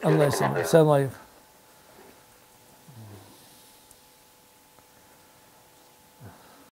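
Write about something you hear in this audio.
An elderly man speaks calmly and clearly into a microphone, close by.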